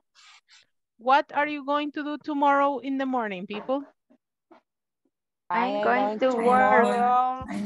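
A woman speaks clearly and with animation through an online call.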